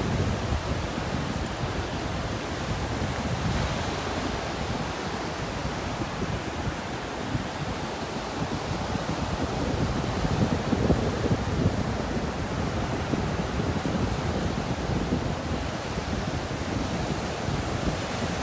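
Ocean waves break and wash steadily up onto a beach.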